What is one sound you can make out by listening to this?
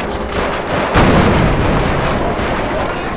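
A firebomb bursts into flames with a loud whoosh.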